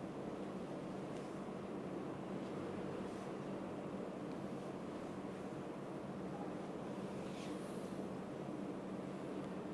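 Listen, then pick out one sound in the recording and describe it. Hands rub and press on bare skin.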